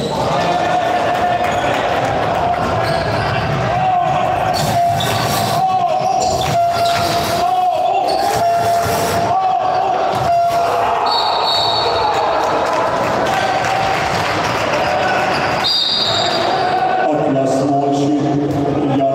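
A ball thuds as it bounces on a hard floor.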